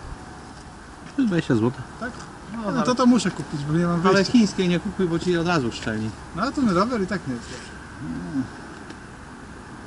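A middle-aged man talks with animation.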